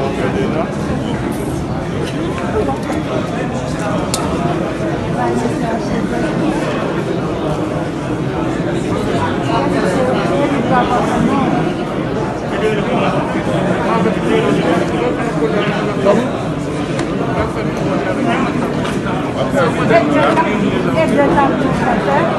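Many men and women chatter at once nearby, in a large echoing room.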